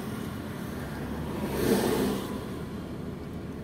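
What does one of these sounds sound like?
A bus passes close by with a brief rushing swell.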